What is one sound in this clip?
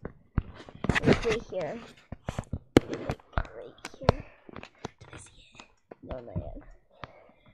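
Cloth rustles and rubs right against the microphone.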